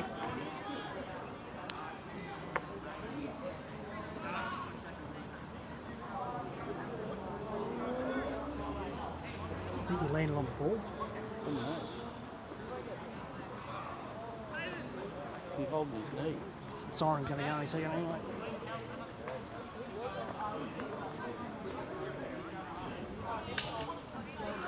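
Young men talk and call out to each other outdoors.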